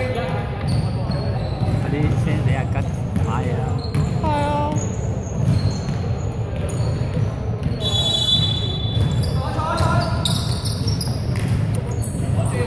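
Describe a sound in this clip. Sneakers squeak sharply on a hard court in a large echoing hall.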